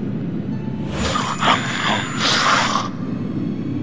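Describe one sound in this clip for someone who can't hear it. A creature growls and snarls up close.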